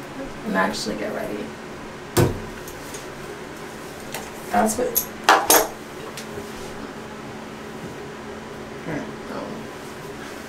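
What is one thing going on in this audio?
A man talks calmly and close by in a small, echoing room.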